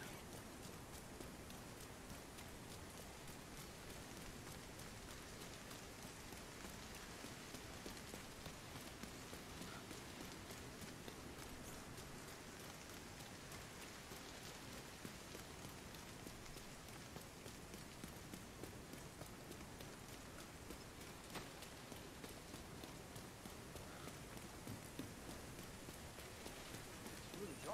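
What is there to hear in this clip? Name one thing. Footsteps splash through wet ground.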